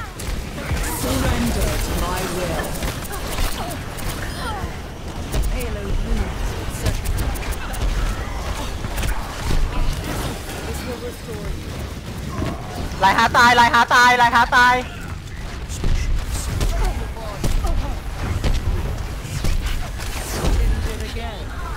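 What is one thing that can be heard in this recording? Gunfire and energy blasts crackle in rapid bursts.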